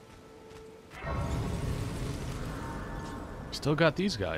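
A shimmering, swelling chime rings out.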